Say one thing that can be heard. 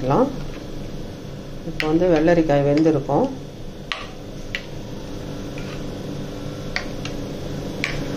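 A spoon stirs and scrapes against a glass bowl.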